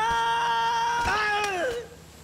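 A body hits the ground with a heavy thud.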